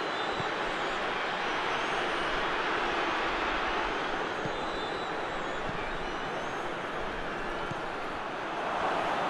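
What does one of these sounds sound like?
A large stadium crowd roars steadily throughout.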